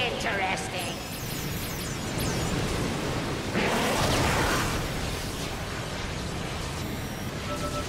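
A laser beam hums and crackles loudly.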